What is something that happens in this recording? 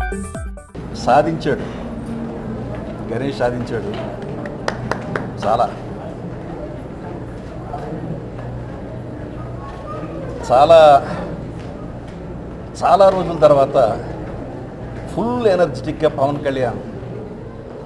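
A middle-aged man speaks into microphones, close by.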